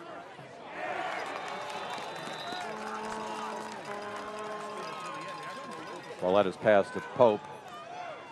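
A crowd cheers and chatters outdoors.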